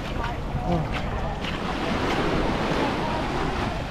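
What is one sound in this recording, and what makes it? Small waves lap gently on a sandy shore.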